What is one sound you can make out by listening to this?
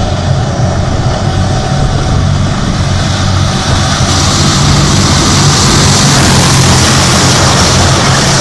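A heavy tank engine roars steadily.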